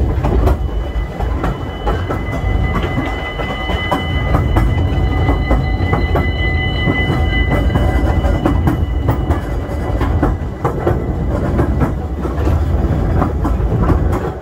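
Wheels clatter and knock over rail joints.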